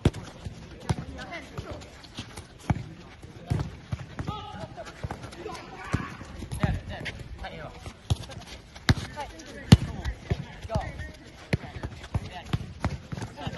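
Footballs thump as children kick them.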